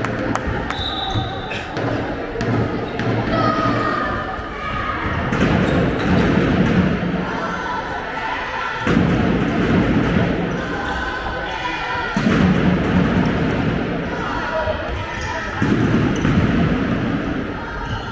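A handball bounces on the floor with sharp thuds.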